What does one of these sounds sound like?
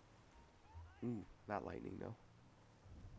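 A police siren gives short bursts.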